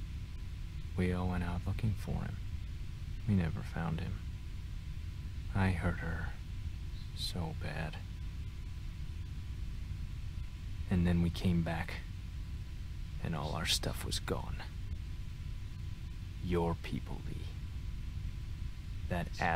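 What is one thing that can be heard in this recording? A man speaks quietly and sadly, close by.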